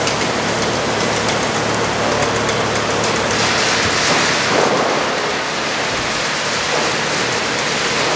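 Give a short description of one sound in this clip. Air rushes steadily through a large suction hose.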